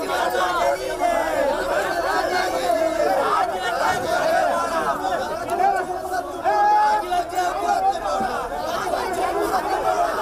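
A crowd of young men shout slogans loudly together outdoors.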